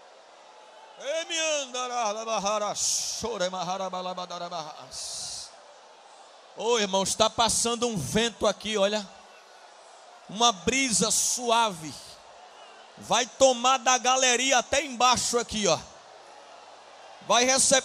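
A man speaks with animation into a microphone, heard through a loudspeaker in a large room.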